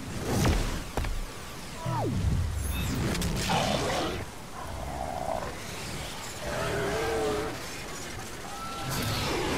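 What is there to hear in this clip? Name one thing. A monster roars and growls deeply.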